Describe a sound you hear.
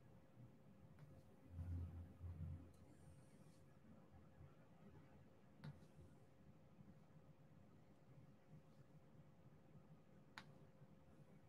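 A small plastic bead clicks softly as it is pressed into place.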